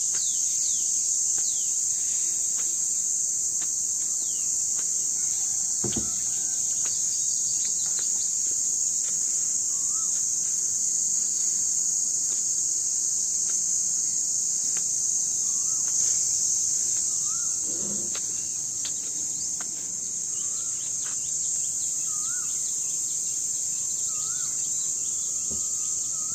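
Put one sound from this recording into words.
Footsteps tap on concrete steps.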